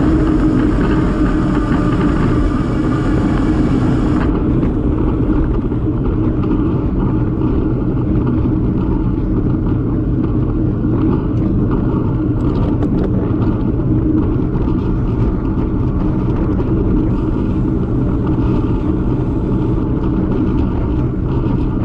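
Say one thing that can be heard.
Wind roars loudly against the microphone.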